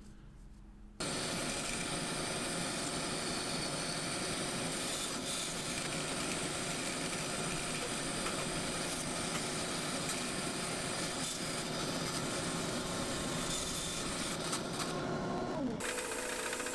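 A band saw runs with a steady whir as it cuts through wood.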